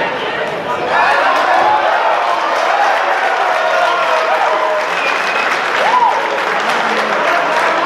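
A man calls out loudly across a noisy echoing hall.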